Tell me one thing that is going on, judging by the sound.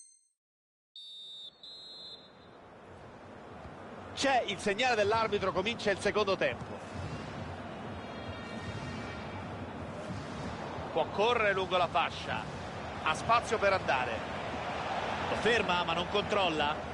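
A large stadium crowd cheers and roars steadily, growing louder.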